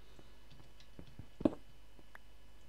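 A pickaxe strikes stone once.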